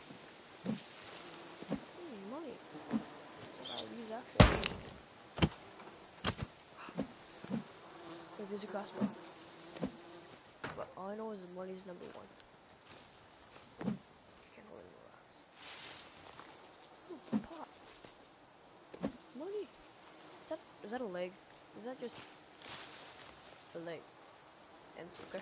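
Footsteps crunch on a leafy forest floor.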